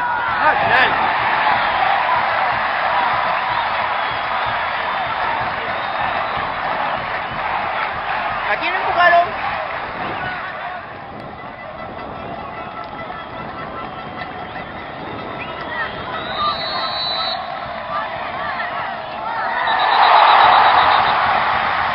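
A large crowd in a stadium cheers and chants, heard from a distance outdoors.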